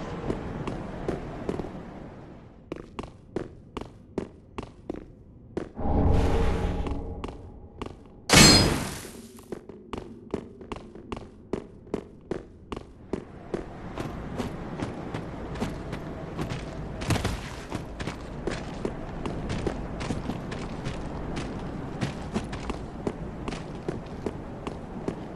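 Armored footsteps clank steadily on stone.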